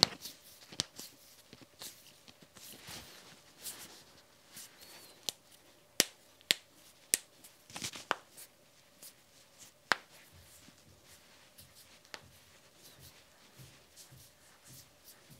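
Hands rub and slap together, with sharp snapping clicks.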